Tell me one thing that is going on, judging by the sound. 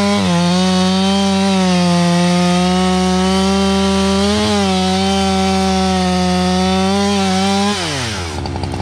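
A chainsaw roars at full throttle, cutting into a tree trunk.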